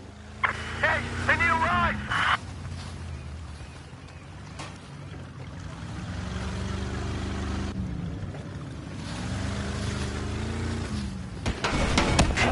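A boat's hull splashes through water.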